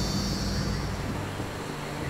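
A river rushes.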